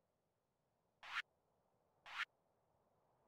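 Soft menu clicks chime.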